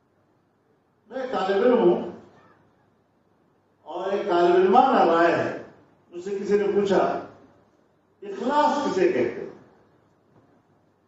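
An elderly man speaks slowly into a microphone, in short phrases with pauses.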